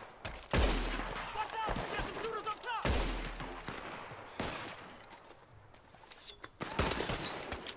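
Gunshots crack and echo outdoors.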